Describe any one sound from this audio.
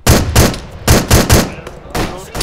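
A rifle fires several quick, loud shots.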